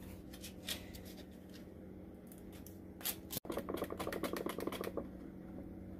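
A plastic pouch crinkles and tears open.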